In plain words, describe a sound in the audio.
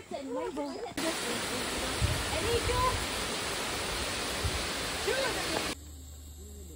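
A waterfall splashes into a pool.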